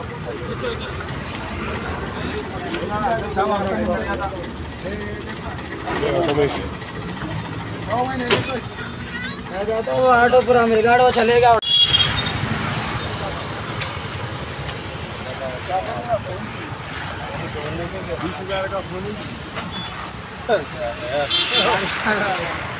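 Several men talk loudly and excitedly close by.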